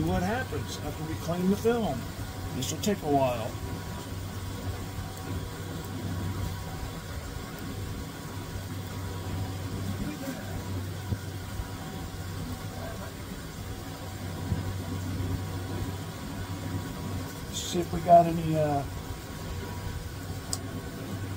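A cloth rubs and wipes against a metal surface.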